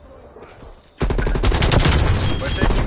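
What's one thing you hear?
A rifle fires rapid automatic bursts close by.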